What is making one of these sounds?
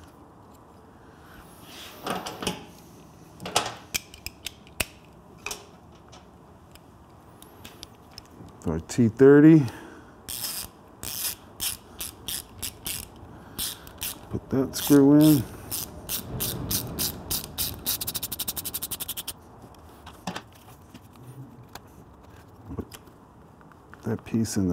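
Rubber cables rustle and creak as hands push them.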